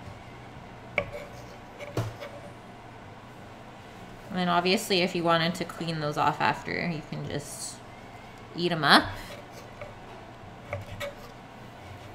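A knife taps on a wooden cutting board.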